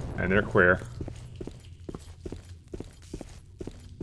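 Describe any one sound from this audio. Footsteps thud steadily on a hard floor and stairs.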